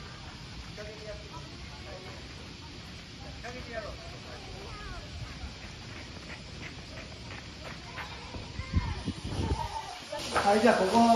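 Children call out faintly in the distance outdoors.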